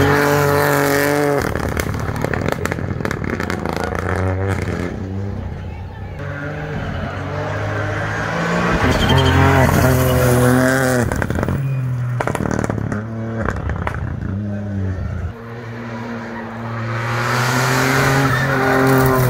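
A rally car engine roars and revs hard as the car speeds past on the road.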